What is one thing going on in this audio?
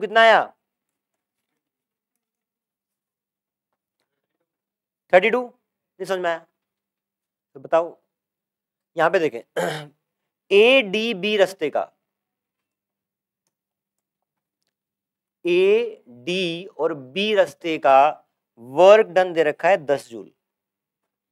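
A man lectures calmly into a clip-on microphone, in short phrases with pauses.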